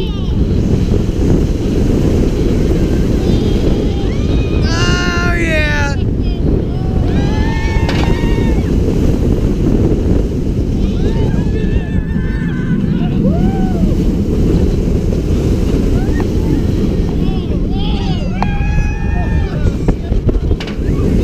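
A roller coaster rumbles and clatters along its track.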